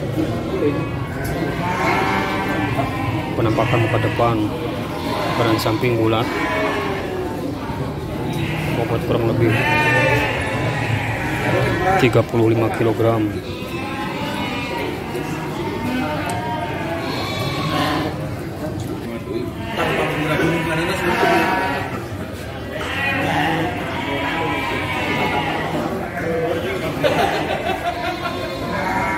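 A crowd of men talks nearby outdoors.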